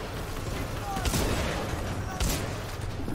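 A gun fires a few shots.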